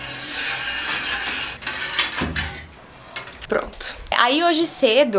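Metal rods of a clothes rack clink and rattle.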